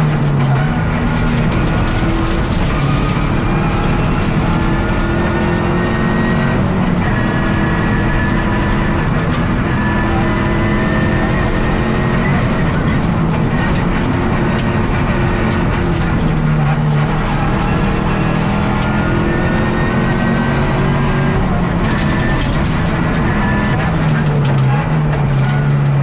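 A rally car engine roars loudly, revving up and down through the gears.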